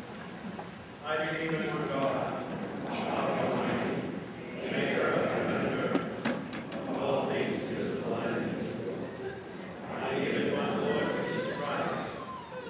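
A man chants aloud in a large echoing hall.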